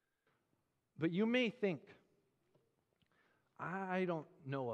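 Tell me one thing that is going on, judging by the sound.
A man speaks calmly into a microphone in a quiet, slightly echoing room.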